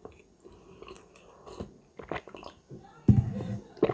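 A middle-aged woman sips a drink from a mug.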